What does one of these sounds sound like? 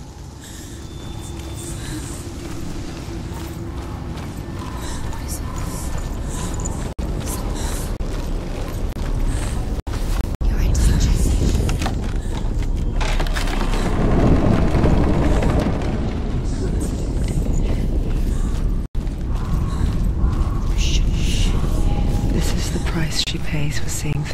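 Footsteps crunch on gravel and dirt.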